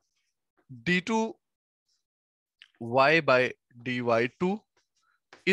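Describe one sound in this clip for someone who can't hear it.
A young man speaks calmly into a close microphone, explaining.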